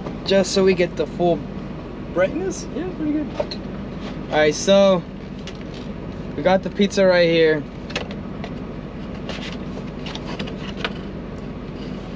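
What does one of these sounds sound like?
A paper pizza box rustles open.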